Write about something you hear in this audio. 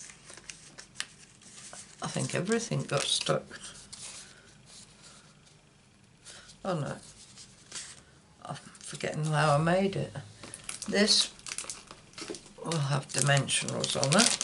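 Stiff paper cards slide and tap against a hard surface.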